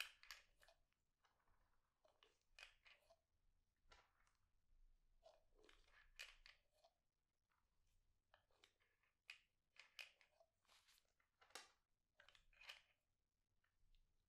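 Small pills click against a glass surface.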